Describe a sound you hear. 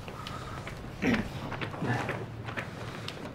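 A teenage boy answers briefly.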